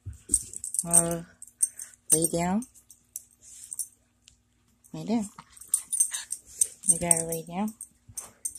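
A small dog whines and yelps playfully up close.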